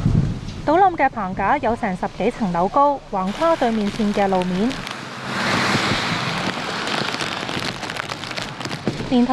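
Heavy rain pours down and splashes.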